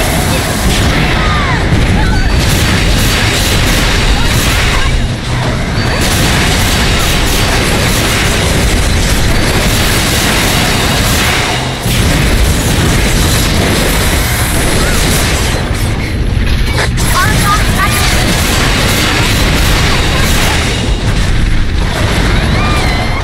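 Blades slash and clang in a fast fight.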